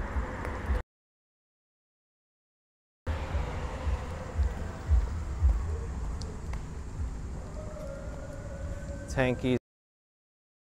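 Traffic hums along a nearby road.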